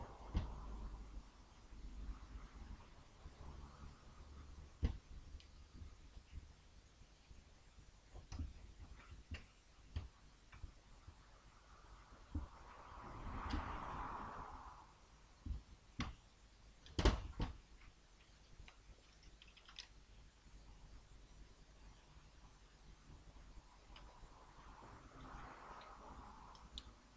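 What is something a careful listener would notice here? Small metal parts click and tap.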